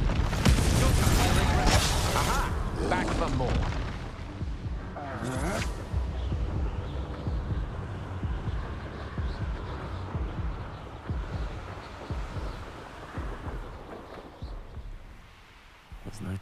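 Wind rushes loudly past while flying, then slowly fades.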